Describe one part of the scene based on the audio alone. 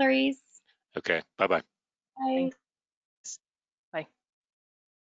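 A woman says a short farewell over an online call.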